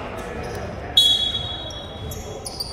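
A referee blows a sharp whistle blast.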